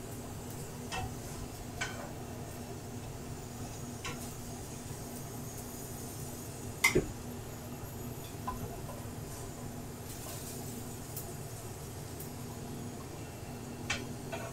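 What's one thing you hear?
A utensil knocks and scrapes against a pan.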